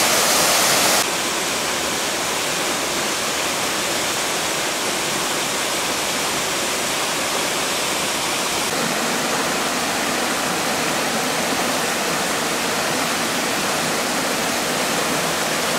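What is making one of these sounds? A mountain stream rushes and splashes over rocks.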